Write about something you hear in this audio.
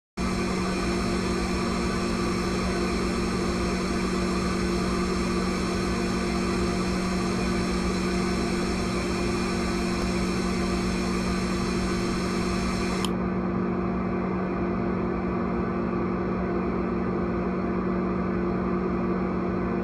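A jet engine roars and whines steadily.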